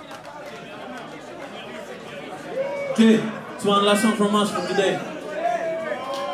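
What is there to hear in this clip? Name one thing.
A man speaks loudly into a microphone.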